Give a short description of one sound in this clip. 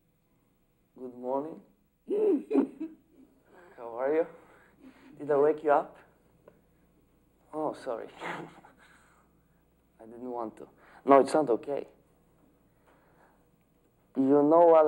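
A young man talks animatedly into a telephone, close by, with pauses between phrases.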